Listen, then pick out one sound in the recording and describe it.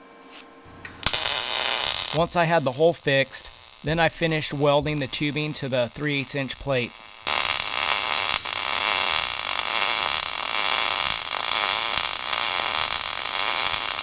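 An arc welder hisses and crackles steadily.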